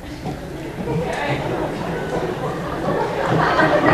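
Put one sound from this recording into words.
Footsteps sound on a wooden stage.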